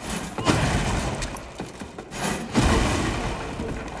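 Wooden beams crash and splinter as they break apart.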